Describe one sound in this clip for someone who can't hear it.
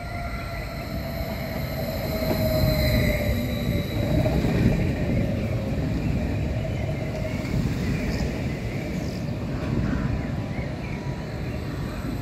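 An electric train rumbles past close by, slowing down.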